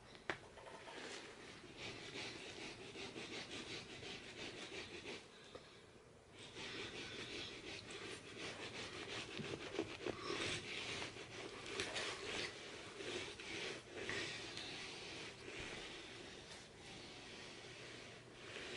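A small brush scrubs rapidly against carpet.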